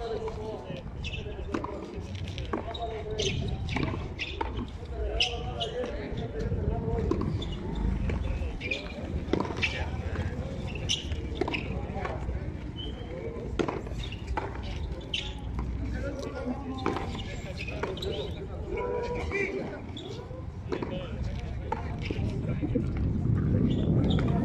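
Adult men talk and call out across the court.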